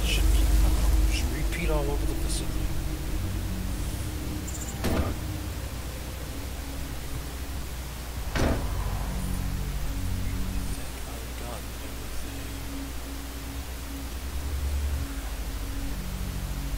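A man talks calmly into a headset microphone.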